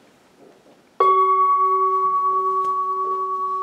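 A large singing bowl is struck and rings on steadily.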